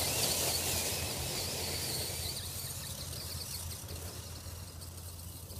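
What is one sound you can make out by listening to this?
A small toy car's motor whines as it drives away and fades.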